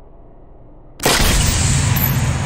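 A rifle fires with a sharp, muffled crack.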